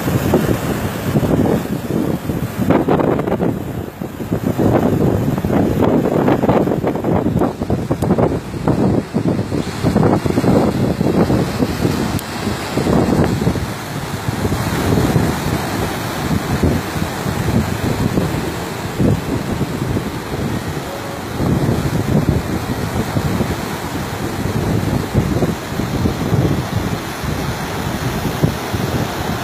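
Wind blows outdoors, buffeting loudly.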